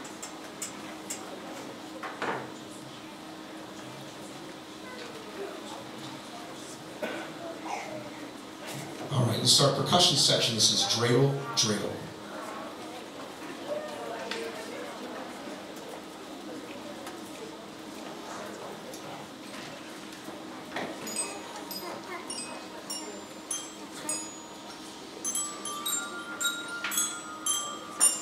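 An audience murmurs and chatters in a large echoing hall.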